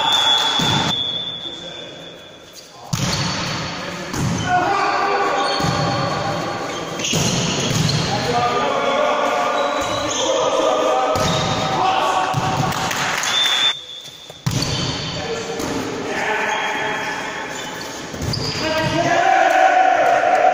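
Sports shoes squeak on a wooden floor.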